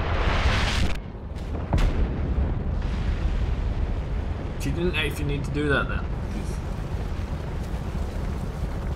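Huge explosions boom and rumble.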